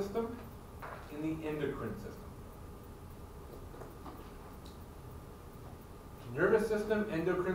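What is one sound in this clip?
A man speaks with animation across an echoing room.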